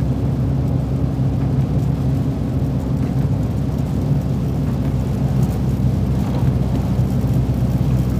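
A truck engine drones steadily from inside the cab.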